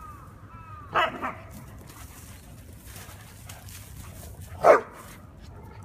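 A dog barks sharply, a couple of times.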